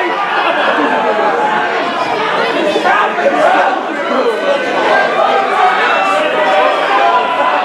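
A crowd chatters and calls out in an echoing hall.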